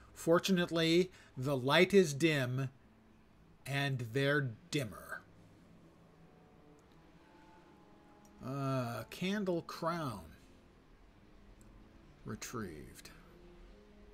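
An elderly man talks calmly and closely into a microphone, in short bursts with pauses.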